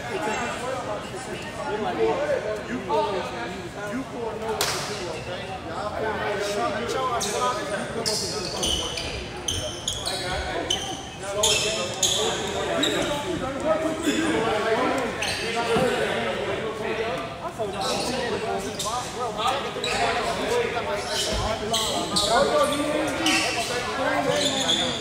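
Young men shout and call out to each other across an echoing gym.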